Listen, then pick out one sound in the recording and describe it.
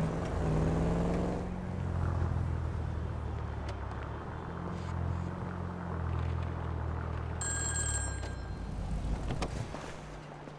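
A car engine hums as a car drives along and slows to a stop.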